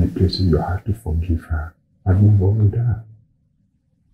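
An older man speaks calmly and seriously.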